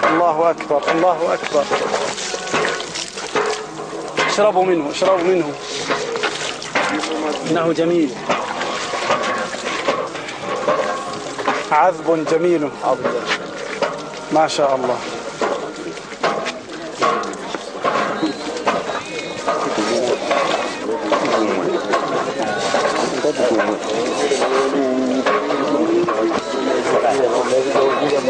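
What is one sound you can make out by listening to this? Several men talk loudly in a crowd outdoors.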